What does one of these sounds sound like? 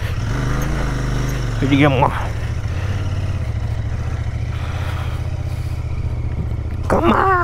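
A motorcycle engine putters steadily close by.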